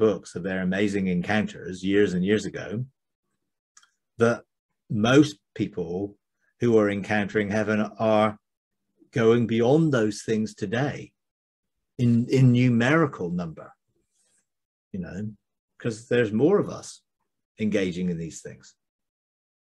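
An older man talks calmly and warmly into a close microphone.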